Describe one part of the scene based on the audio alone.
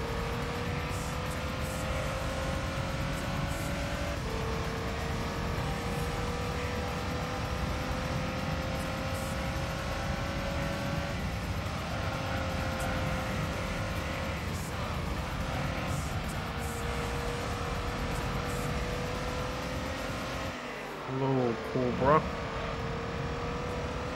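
A racing car engine whines steadily, rising in pitch and dropping at each gear change.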